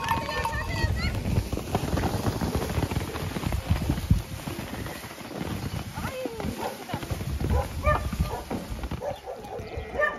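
Wind blows and rumbles against the microphone.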